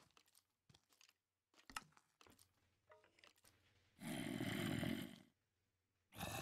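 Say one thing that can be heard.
A young man speaks quietly, close to a microphone.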